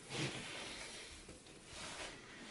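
Carpet drags and rustles across the floor.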